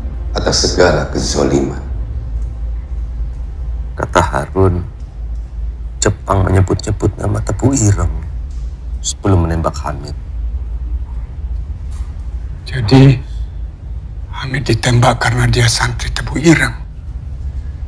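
A man speaks in a low, urgent voice close by.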